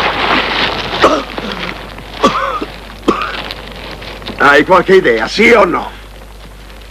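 A man speaks in a strained, weak voice close by.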